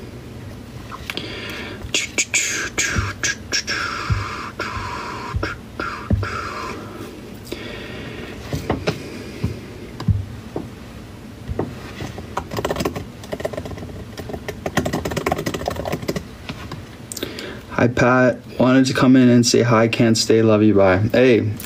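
A young man talks casually, close to a microphone.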